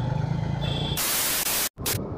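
Loud television static hisses briefly.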